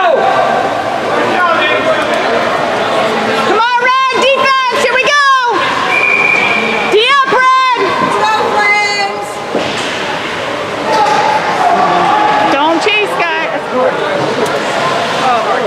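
A crowd of spectators chatters and calls out in a large echoing arena.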